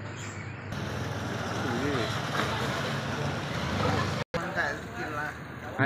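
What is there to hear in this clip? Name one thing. Motorbike engines hum as scooters ride past.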